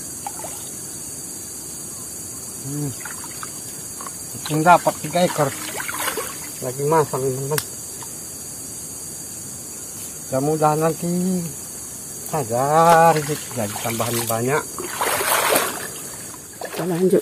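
Water splashes and trickles as a man hauls a net.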